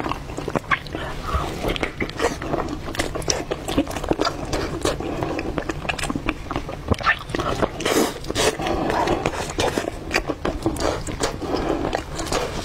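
Sticky meat squelches and tears apart in someone's hands.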